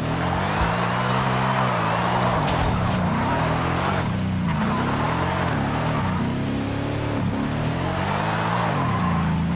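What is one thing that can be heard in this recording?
A car engine revs hard, rising and falling as the gears change.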